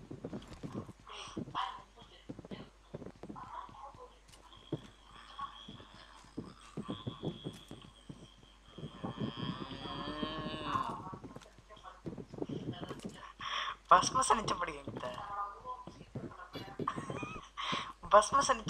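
Footsteps thud across a wooden floor.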